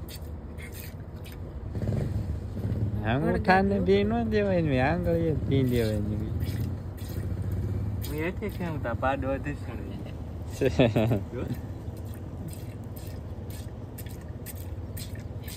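Milk squirts rhythmically into a metal pail.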